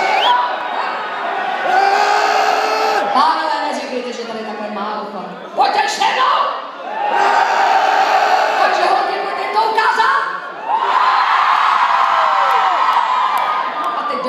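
A performer sings into a microphone on stage, heard loudly through speakers in a large echoing hall.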